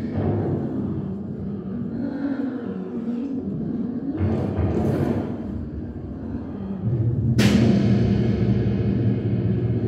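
An electric guitar plays through effects pedals.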